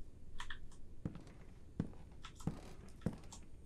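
Footsteps thud heavily on wooden boards.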